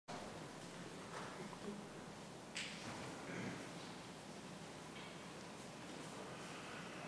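Footsteps shuffle softly on a hard floor in a large, quiet hall.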